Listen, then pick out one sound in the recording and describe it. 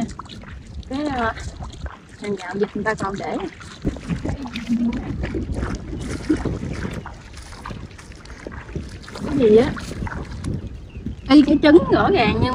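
Footsteps squelch through wet mud.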